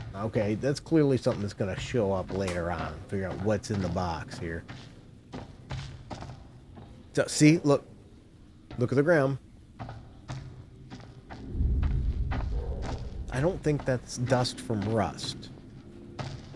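Footsteps scuff slowly on a hard floor.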